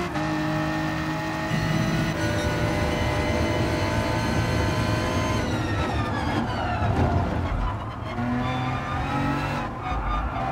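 A race car engine roars loudly at high revs.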